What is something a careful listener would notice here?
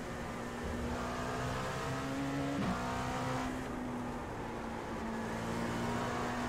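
A racing car engine drones steadily, shifting in pitch as the car changes gear.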